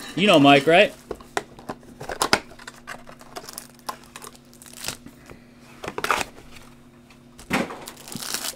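Cardboard packaging rustles and tears as a box is opened.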